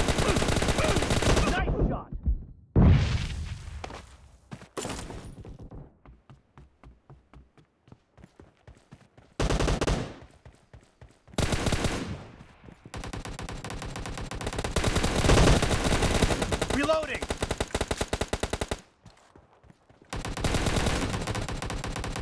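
An assault rifle fires in a video game.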